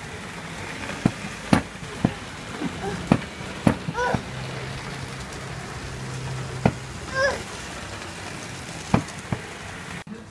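A controller knob clicks and knocks as a small boy turns it.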